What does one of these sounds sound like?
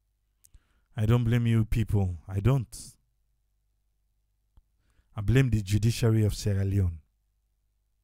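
An elderly man speaks into a microphone in short bursts.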